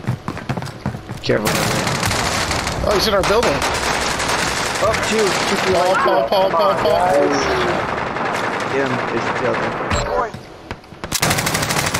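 Rapid gunfire cracks out in short bursts.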